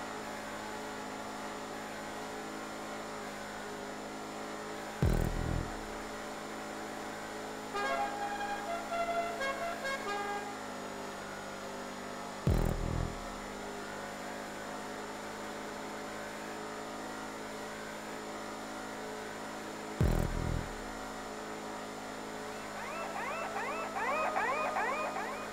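A car engine drones steadily at speed.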